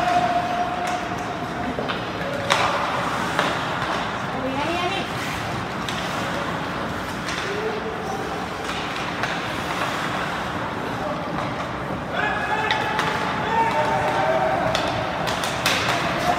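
Hockey sticks click against the puck.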